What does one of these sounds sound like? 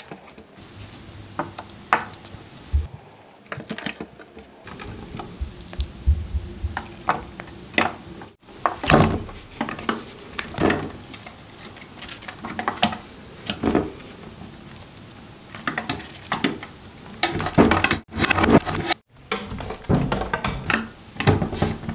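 A small animal nibbles and crunches on pomegranate seeds up close.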